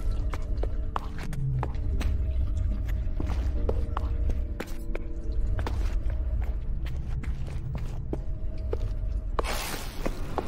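Footsteps clank on a hard metal floor.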